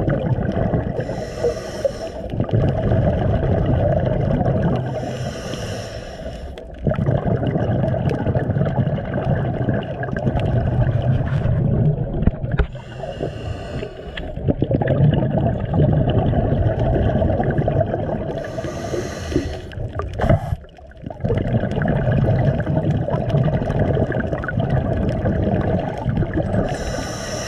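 Scuba air bubbles gurgle and rush up in bursts underwater.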